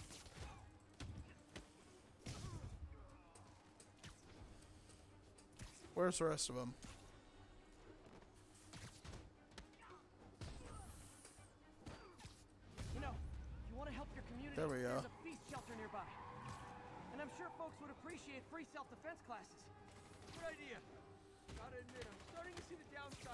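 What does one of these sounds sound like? Punches land with dull thuds.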